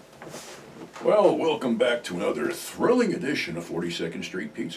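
An older man speaks calmly, close to the microphone.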